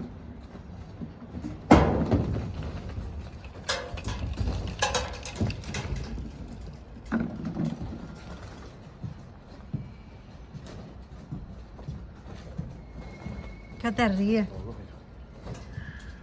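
A plastic crate knocks and rattles on a metal roof.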